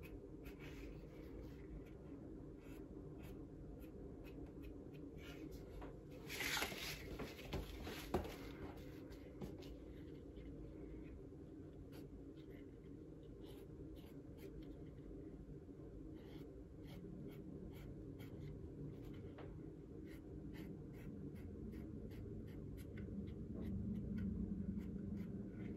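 A small hand roller clicks and rolls over leather.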